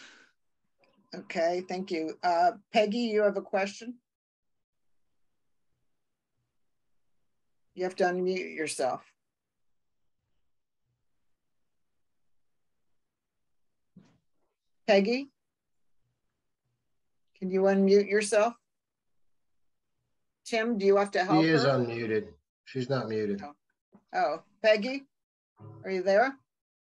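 An elderly woman speaks calmly over an online call, with pauses.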